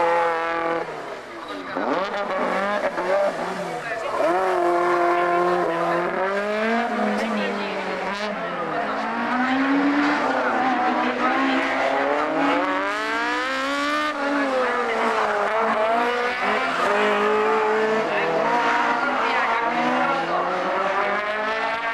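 A car engine revs hard, rising and falling in pitch as it races through bends.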